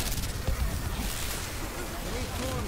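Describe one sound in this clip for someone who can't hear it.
A fiery blast bursts nearby.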